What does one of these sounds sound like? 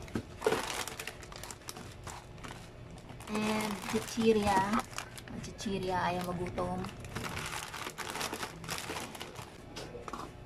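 Plastic snack bags crinkle as they are handled.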